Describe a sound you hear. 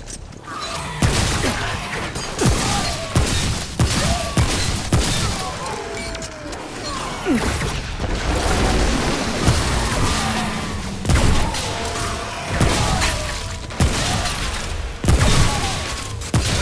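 Creatures shriek and growl.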